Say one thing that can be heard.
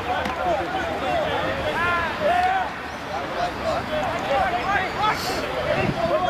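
Young men shout to each other outdoors across an open field.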